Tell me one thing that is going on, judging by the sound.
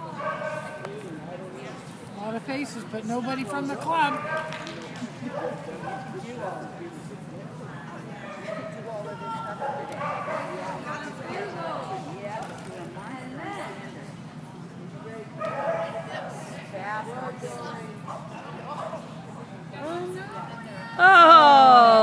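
A nearby man talks calmly in a large echoing hall.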